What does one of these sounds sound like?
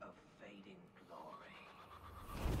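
A man speaks in a low, gruff voice.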